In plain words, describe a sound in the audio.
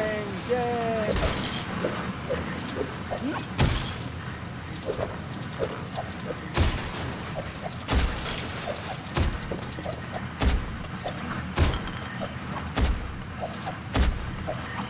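Coins jingle and clink quickly, many times.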